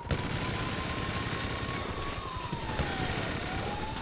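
A helicopter's rotor whirs overhead.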